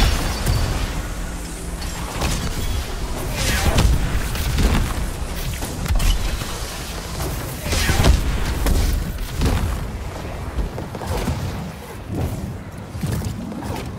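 Energy weapons fire in quick bursts.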